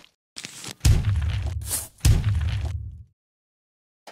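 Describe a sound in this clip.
A giant robot stomps with heavy, booming thuds.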